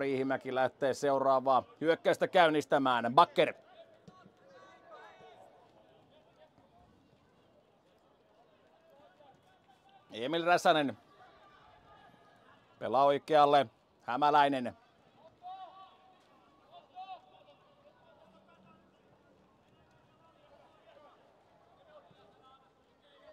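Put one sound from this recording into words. Football players call out to each other far off across an open pitch.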